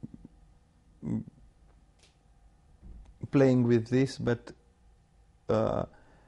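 A man speaks calmly and haltingly, close to a microphone.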